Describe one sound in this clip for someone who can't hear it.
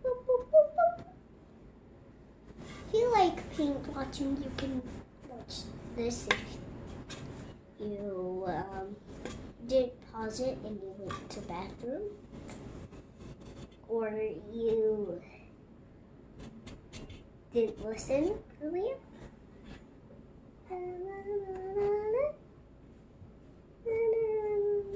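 A young child talks nearby with animation.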